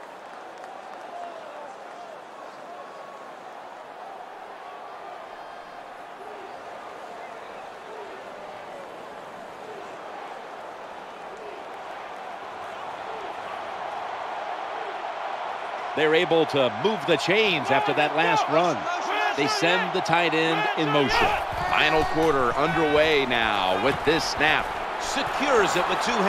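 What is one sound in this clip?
A large crowd murmurs and roars in a stadium.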